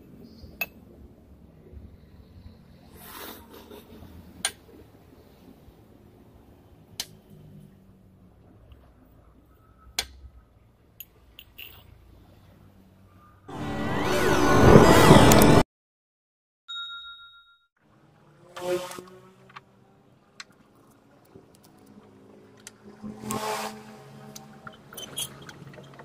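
Metal parts clink and knock against a steel vise.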